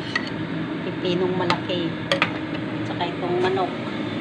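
A metal ladle clinks against a ceramic pot of soup.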